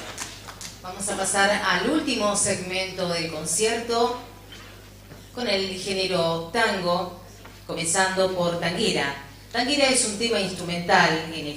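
A woman speaks calmly into a microphone, reading out through loudspeakers.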